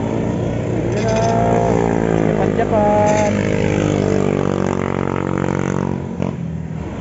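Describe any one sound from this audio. A motorcycle engine roars loudly as it passes close by and fades away.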